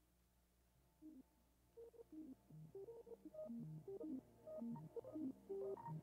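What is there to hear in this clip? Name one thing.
Playful chiming game notes pop and bounce as fruit drops and lands.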